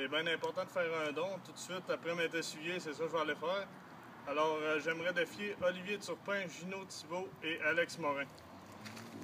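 A young man speaks clearly and close by.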